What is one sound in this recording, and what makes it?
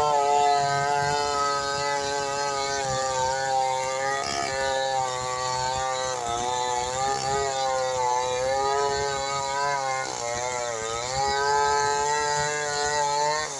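A chainsaw engine roars steadily, its pitch dipping as it bites into wood.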